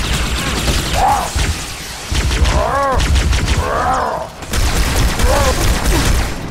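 Creatures screech and growl.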